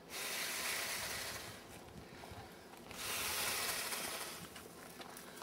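A firework hisses loudly in bursts.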